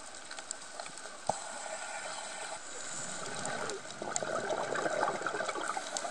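Water murmurs and crackles softly all around underwater.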